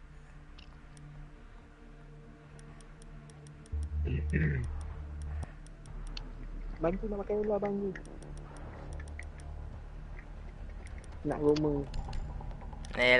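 Short soft clicks tick as menu choices change.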